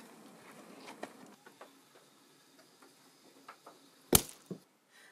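Footsteps thud softly on a wooden floor.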